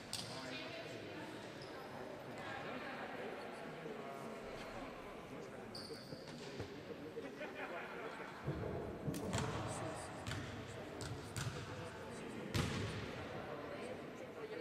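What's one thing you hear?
Young women talk and call out in a large echoing hall.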